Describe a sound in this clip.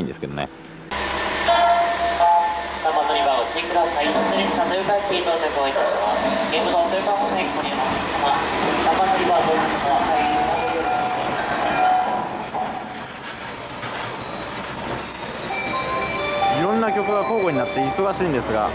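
A train rolls slowly into a station.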